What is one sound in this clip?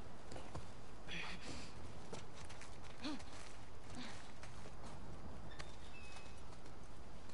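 Footsteps scuff softly on the ground.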